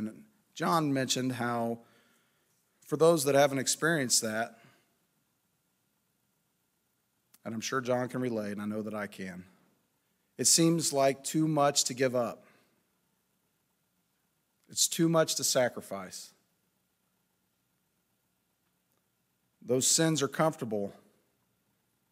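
A man speaks calmly into a microphone, with long pauses between phrases.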